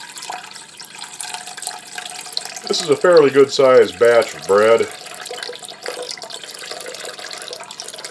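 Water pours from a jug into a metal bowl with a steady splashing trickle.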